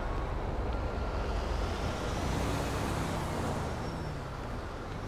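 A truck engine rumbles close by and passes.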